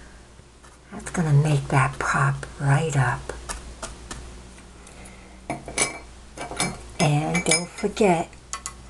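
A paintbrush dabs and strokes softly on canvas.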